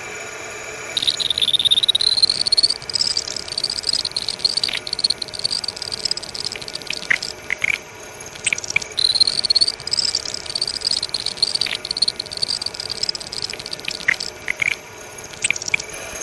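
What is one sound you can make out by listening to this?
A drill bit screeches loudly as it cuts into metal.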